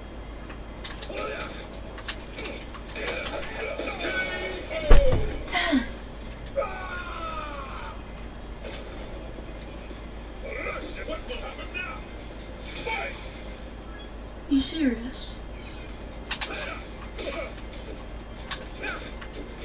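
Game fighters grunt and shout.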